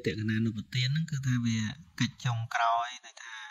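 A man speaks calmly and steadily, close to a microphone.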